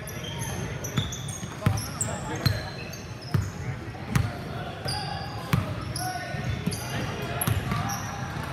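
A basketball bounces on a wooden floor, thumping several times.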